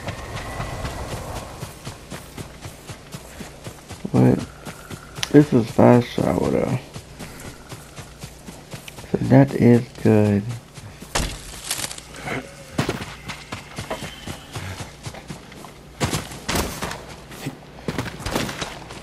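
Footsteps run quickly through grass and over a dirt path.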